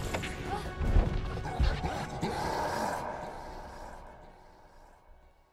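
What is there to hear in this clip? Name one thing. Heavy thuds and crashes of a brawl with a large creature ring out.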